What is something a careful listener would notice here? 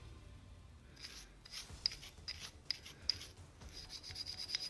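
Metal parts click as they are handled.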